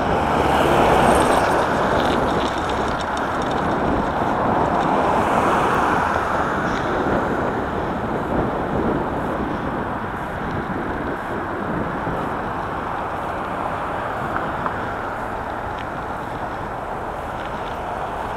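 Tyres hum steadily on rough asphalt.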